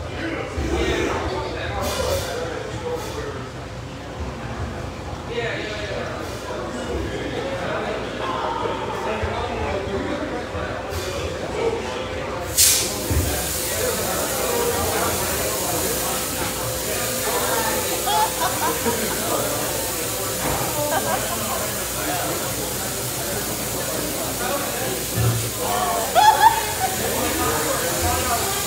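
A drummer pounds drums and crashes cymbals.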